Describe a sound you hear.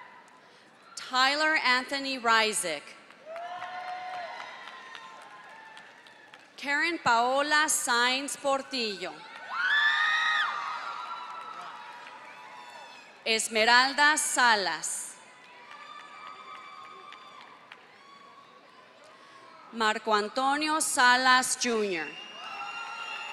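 A crowd cheers and whoops loudly in bursts.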